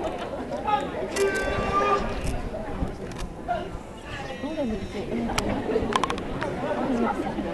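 Young men chant and call out loudly outdoors.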